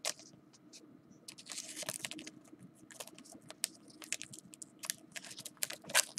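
A plastic sleeve crinkles and rustles as it is handled.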